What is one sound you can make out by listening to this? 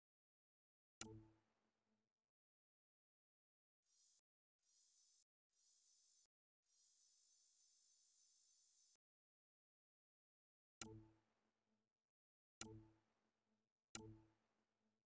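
A deep electronic thump with a short chime sounds as a menu item is selected.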